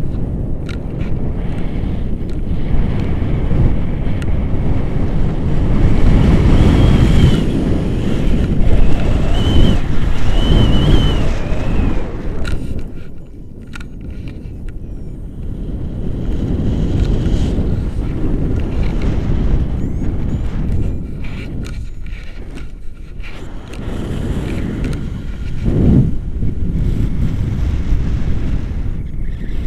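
Wind rushes loudly past a microphone outdoors.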